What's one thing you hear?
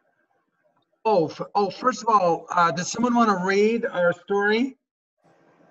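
A man speaks clearly and with animation through an online call.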